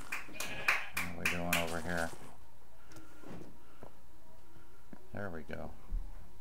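A sheep bleats nearby.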